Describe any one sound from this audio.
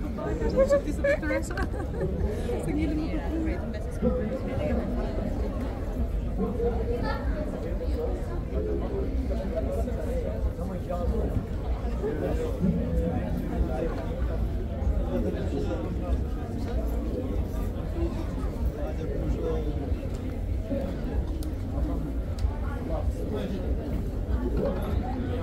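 A crowd of people chatter throughout.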